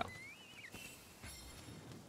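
Sharp blade strikes hit a creature.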